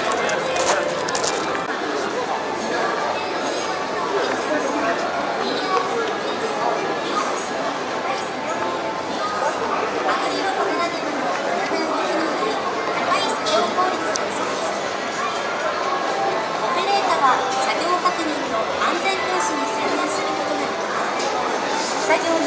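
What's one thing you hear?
A crowd of adults murmurs and chatters in a busy hall.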